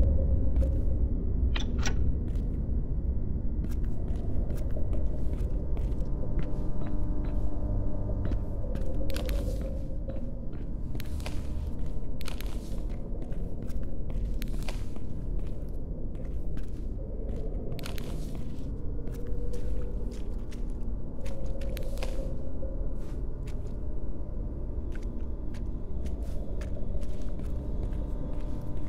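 Electrical equipment hums low and steadily.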